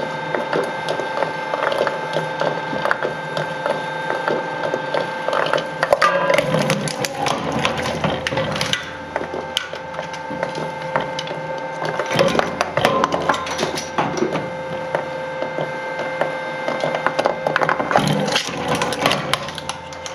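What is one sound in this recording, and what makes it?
A shredder's rotating blades grind and hum steadily.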